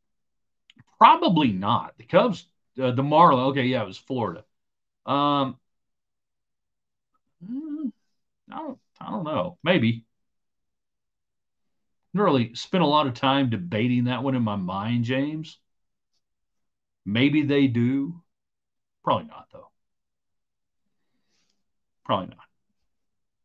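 An older man talks calmly into a microphone in bursts with pauses, as if over an online call.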